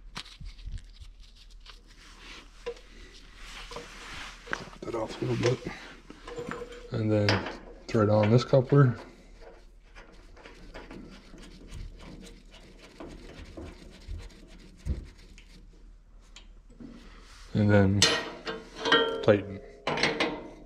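Small metal parts click and clink as they are handled.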